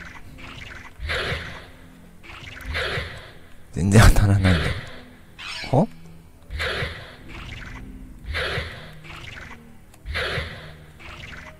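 A creature hisses in short, regular bursts.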